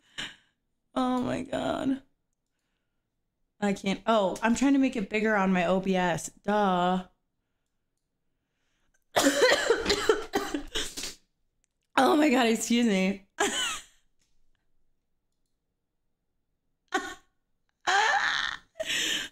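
A young woman talks with animation close to a microphone.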